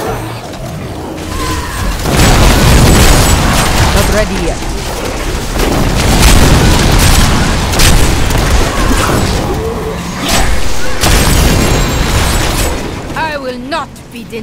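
Magic spells crackle and boom in a fierce battle.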